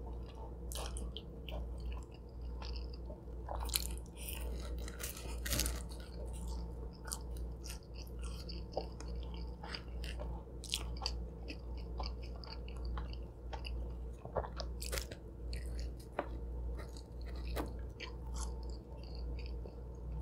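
A young woman slurps and smacks her lips close to a microphone.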